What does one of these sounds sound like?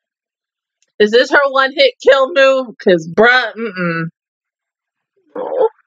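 A young woman speaks animatedly, close into a microphone.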